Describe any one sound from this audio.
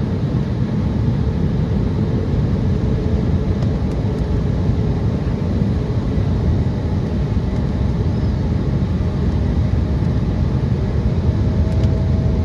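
Inside the cabin of a regional jet on descent, the engines and rushing air give a steady low roar.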